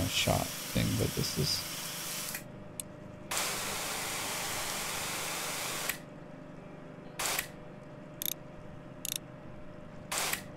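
A pressure washer sprays water with a loud hiss in bursts.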